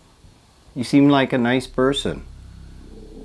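A man speaks in a low, hushed voice nearby.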